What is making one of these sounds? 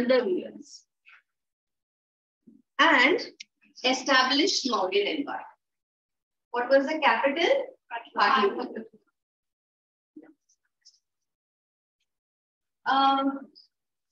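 A woman speaks clearly, explaining in short bursts with pauses.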